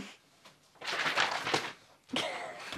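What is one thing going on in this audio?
Sheets of paper rustle and flutter through the air.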